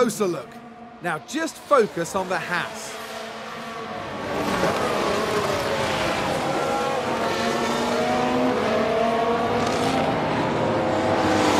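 Racing car engines scream past at high revs, rising and falling in pitch.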